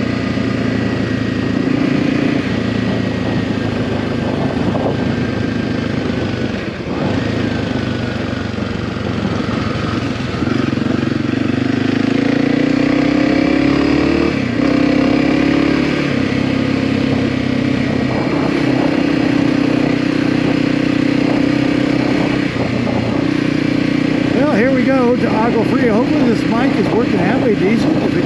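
A motorcycle engine hums steadily and rises and falls in pitch.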